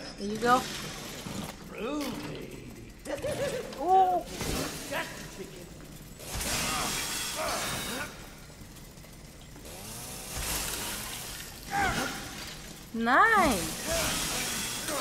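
A chainsaw engine roars and revs.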